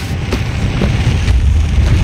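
Flames crackle nearby.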